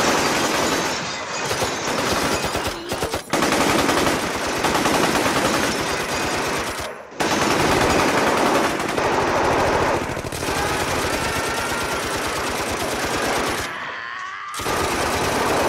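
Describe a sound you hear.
Machine guns fire in rapid, loud bursts.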